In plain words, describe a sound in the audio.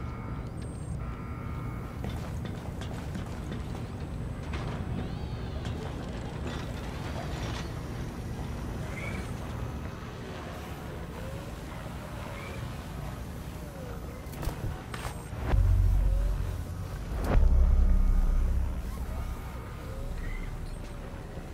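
Footsteps thud on hard floors and metal stairs.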